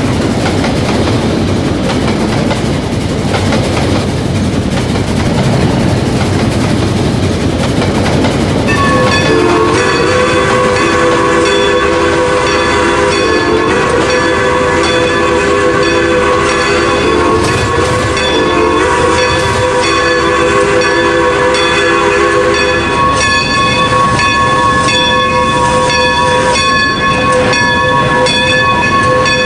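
A steam locomotive chugs and rumbles along the tracks.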